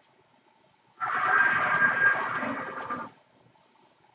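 A rushing whoosh plays as a video game's warp sequence runs.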